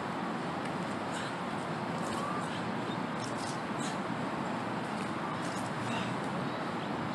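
A stick swishes through the air in quick swings.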